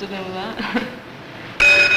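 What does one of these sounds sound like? A young girl speaks and laughs softly nearby.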